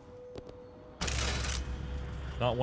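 A heavy metal vault door mechanism hisses.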